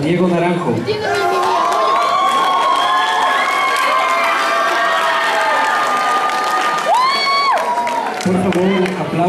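A crowd cheers and screams loudly in a large echoing hall.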